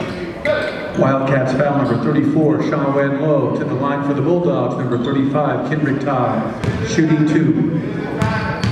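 A crowd of spectators chants and cheers loudly in an echoing gym.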